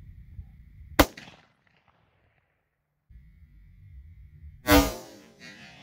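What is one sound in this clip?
A rifle fires loud, sharp shots outdoors.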